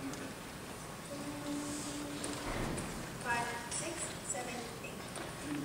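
A choir begins to sing softly in a large echoing hall.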